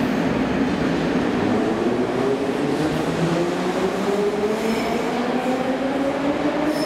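A subway train pulls away, its motors whining higher as it speeds up.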